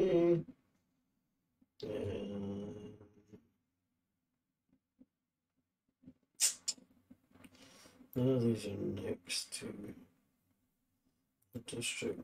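A man talks into a close microphone in short bursts with pauses.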